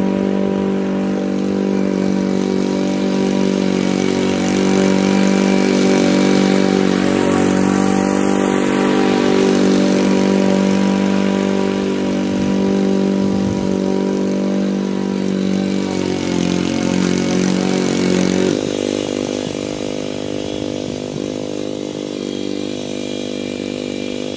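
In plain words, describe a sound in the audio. A petrol lawn mower engine drones steadily, near and then farther off, changing pitch slightly as it goes.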